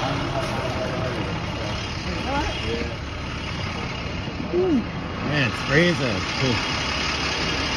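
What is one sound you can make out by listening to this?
People talk nearby outdoors.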